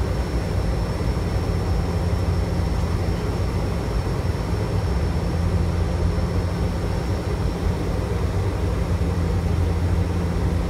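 A turboprop airliner's engines and propellers drone steadily on approach, heard from inside the cockpit.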